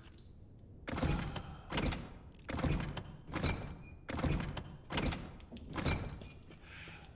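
A fist knocks heavily on a wooden door several times.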